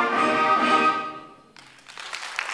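A school concert band holds a final chord and cuts off in a hall.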